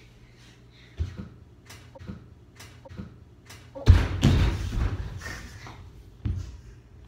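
Bare feet thump on a wooden floor close by.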